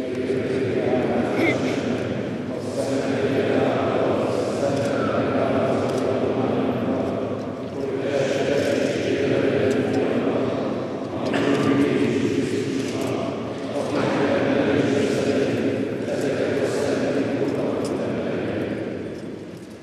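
A group of men sing together in a large echoing space.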